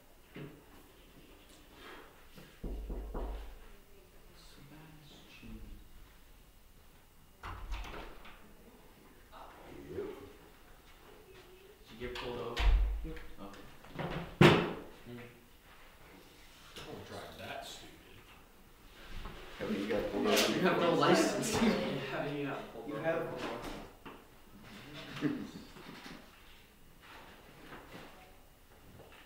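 A man talks calmly close by, with pauses.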